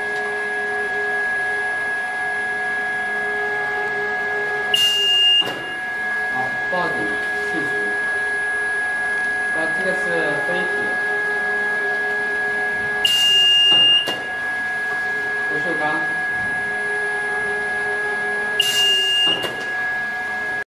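A conveyor machine hums steadily.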